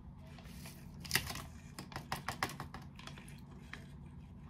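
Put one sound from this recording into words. A plastic seasoning packet crinkles as it is torn and shaken.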